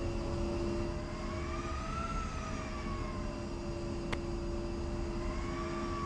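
A jet engine whines and hums steadily, with its pitch slowly rising and falling.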